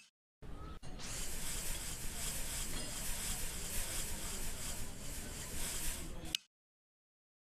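A sponge scrubs hard across a smooth surface with a steady rasping.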